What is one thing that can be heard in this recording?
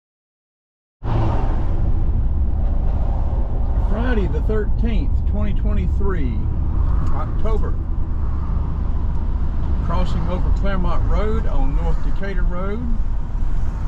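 Tyres rumble steadily on the road from inside a moving car.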